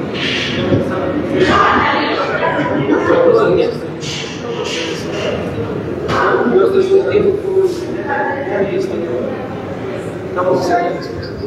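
A crowd of men and women chatters through an open doorway nearby.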